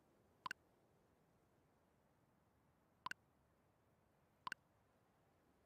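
A game menu gives short double clicks as it is tapped.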